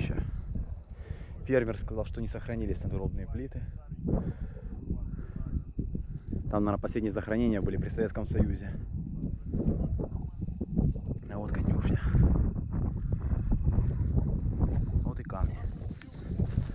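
Wind blows and rumbles outdoors in the open.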